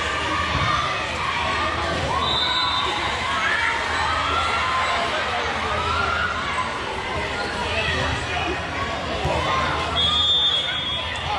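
Young girls chatter and call out across a large echoing gym.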